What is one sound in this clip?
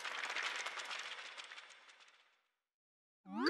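Pages of a book flutter and rustle as they flip quickly.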